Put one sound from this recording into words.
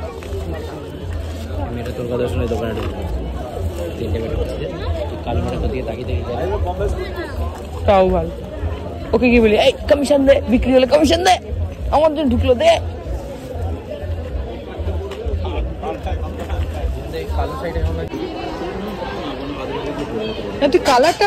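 A crowd murmurs all around outdoors.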